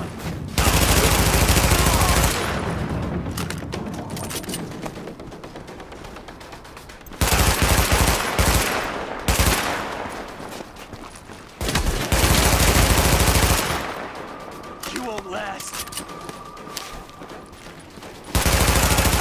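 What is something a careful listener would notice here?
Rapid gunfire rattles in loud bursts, with echoing tails.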